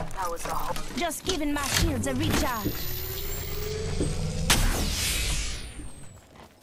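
A device charges with a rising electric hum.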